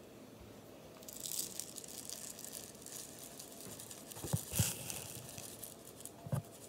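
Sprinkles rattle as they pour from a jar.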